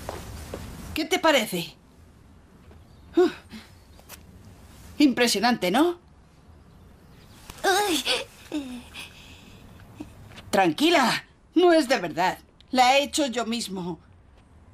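A boy talks cheerfully nearby.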